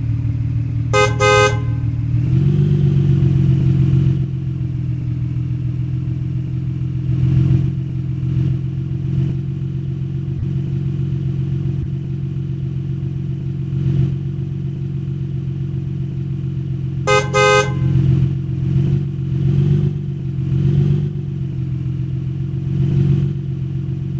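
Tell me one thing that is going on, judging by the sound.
A heavy truck engine drones steadily, rising and falling as it drives.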